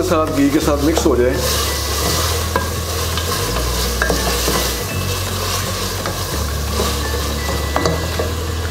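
A wooden spoon stirs and scrapes in a metal pot, knocking now and then.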